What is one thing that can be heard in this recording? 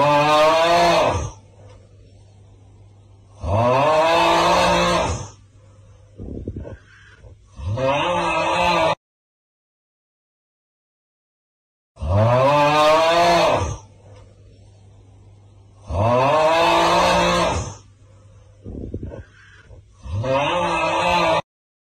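A young man sings loudly in short bursts with pauses between.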